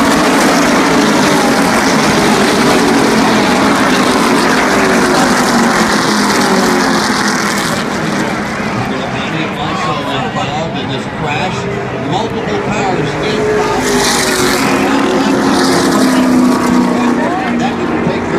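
A large crowd cheers and murmurs outdoors.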